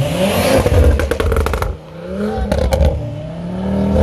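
A car exhaust pops and crackles sharply.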